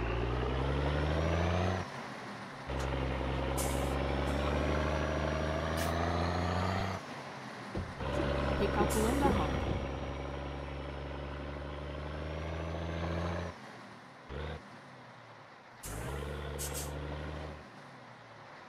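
A truck engine idles and revs, rising and falling in pitch.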